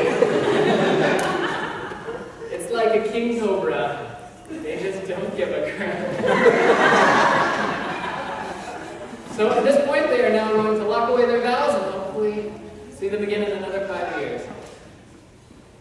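A man speaks calmly and clearly in a room with some echo.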